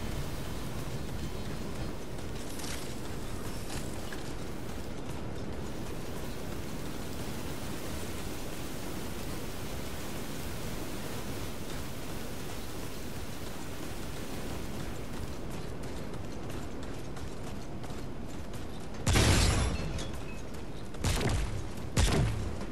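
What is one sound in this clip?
Heavy footsteps thud on a metal floor.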